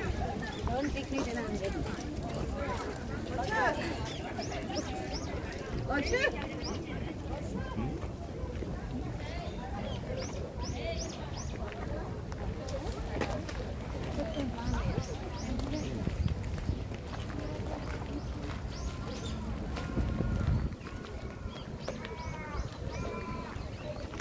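Many footsteps shuffle on a gravel path.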